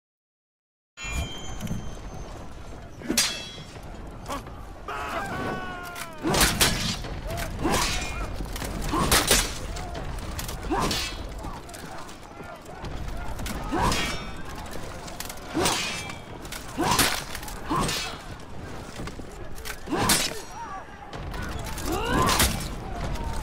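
Steel swords clash and ring.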